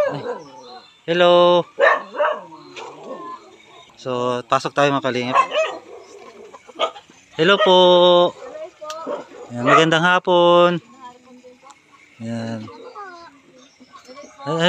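A young woman talks with children nearby.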